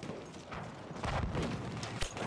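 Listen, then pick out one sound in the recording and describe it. A bolt-action rifle fires a sharp shot.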